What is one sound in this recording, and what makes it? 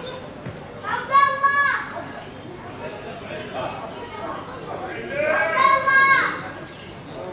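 Young men shout across an open outdoor field.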